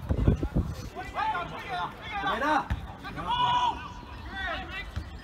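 Young men shout loudly to each other outdoors, some distance away.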